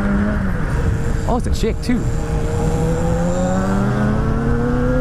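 A motorcycle engine hums steadily up close, its pitch rising slightly toward the end.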